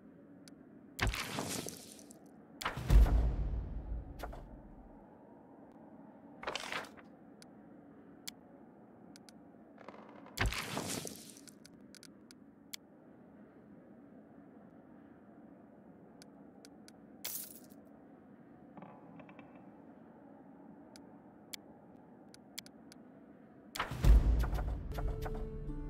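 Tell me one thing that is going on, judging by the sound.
Soft whooshes sound as game panels slide open and shut.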